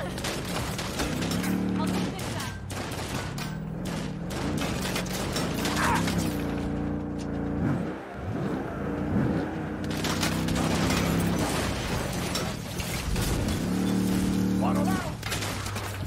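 A truck engine roars and revs.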